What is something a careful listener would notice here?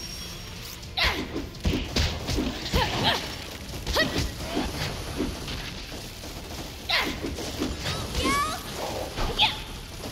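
Sword blows swish and strike in quick bursts.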